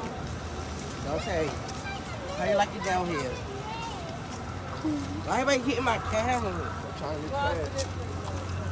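A young boy talks close by, with animation.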